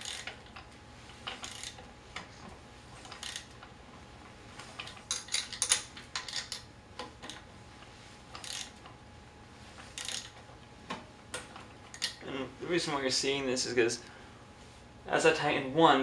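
Metal parts click and rattle as a wheelchair is adjusted by hand.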